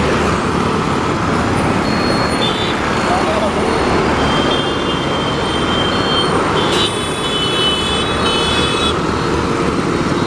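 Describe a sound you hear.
Motorbikes whizz past close by.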